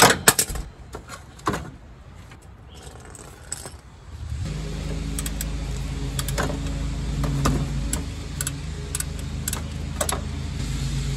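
Metal parts clink and knock as hands work on an engine.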